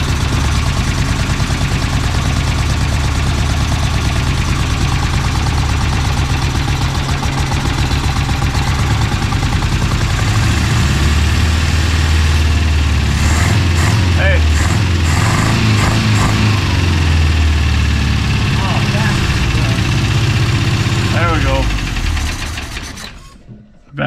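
A car engine idles with a low, uneven rumble, then shuts off.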